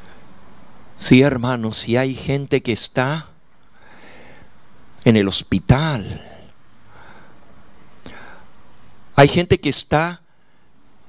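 An elderly man preaches with animation into a microphone, in short bursts with pauses.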